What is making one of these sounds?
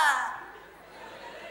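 A man shouts loudly and angrily.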